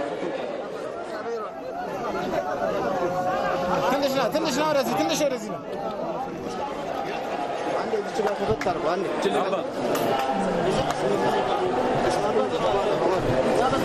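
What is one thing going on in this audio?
A crowd of men talk and call out outdoors.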